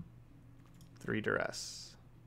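A man speaks briefly close to a microphone.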